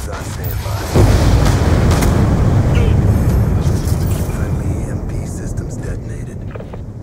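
A loud explosion booms and rumbles, slowly fading.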